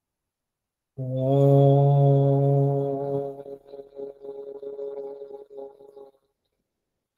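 An older man chants in a long, steady tone through an online call.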